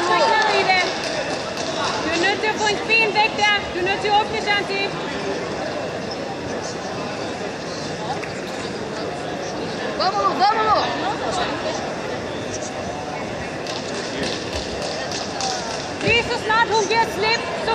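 A crowd murmurs steadily in the background.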